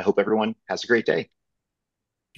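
A man speaks in a friendly way over an online call.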